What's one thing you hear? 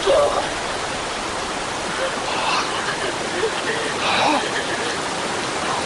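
Water rushes steadily down a waterfall.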